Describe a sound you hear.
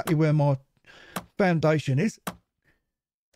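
An axe chops into a tree trunk.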